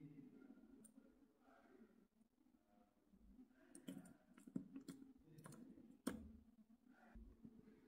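Fingers tap on a keyboard.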